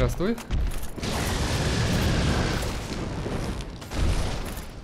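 Fire bursts out and roars loudly.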